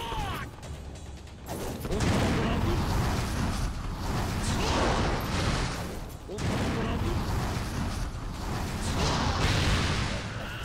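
Blades swish and clash in combat.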